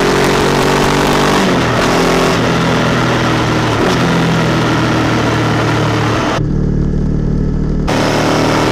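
Wind roars loudly past the rider.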